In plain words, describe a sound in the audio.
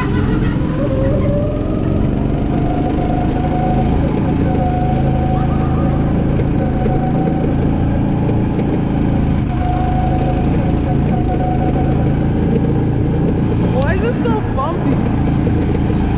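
Wind rushes past as a go-kart speeds along.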